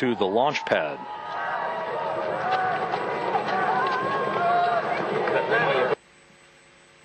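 A crowd murmurs and cheers outdoors.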